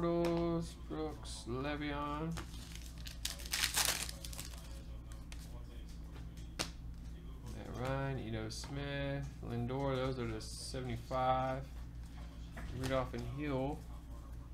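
Trading cards slide against each other.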